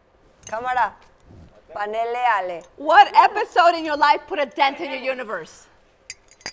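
A woman talks with animation, close by.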